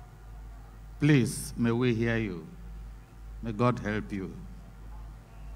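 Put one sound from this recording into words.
An elderly man speaks forcefully into a microphone, heard through loudspeakers.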